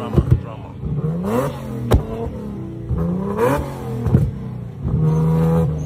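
A car exhaust pops and bangs sharply.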